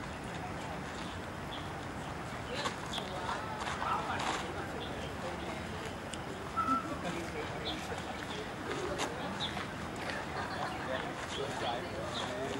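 Feet shuffle and scuff on sandy ground outdoors.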